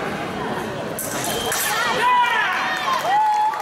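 Fencing blades clash and scrape.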